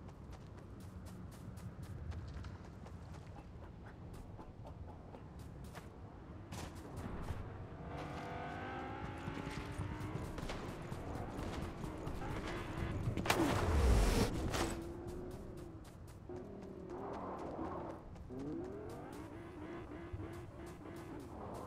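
Footsteps patter quickly over sand and dirt.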